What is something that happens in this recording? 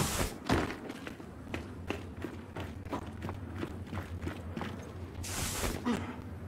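Heavy boots thud on wooden floorboards.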